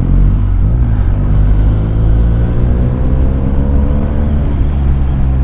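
A motorcycle engine rises in pitch as it speeds up.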